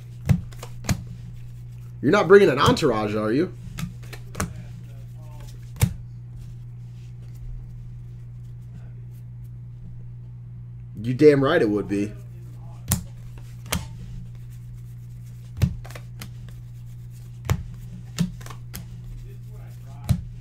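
Trading cards click and snap as they are flipped through by hand.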